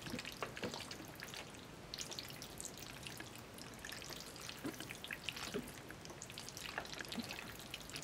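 Chopsticks lift and stir sticky noodles.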